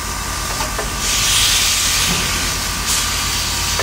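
Steam hisses loudly from a locomotive's cylinders.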